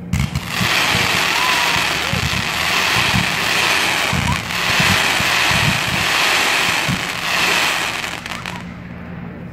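A firework fountain sprays with a loud steady hiss and crackle.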